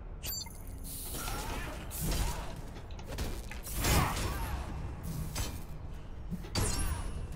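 Game gunfire and explosions burst loudly.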